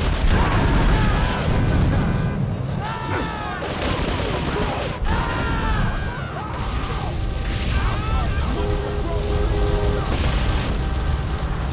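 Flames roar from a burning vehicle.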